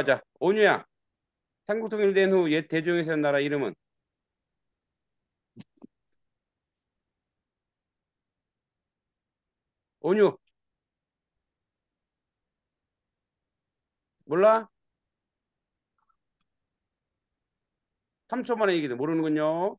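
A man speaks calmly over an online call, in short bursts with long pauses.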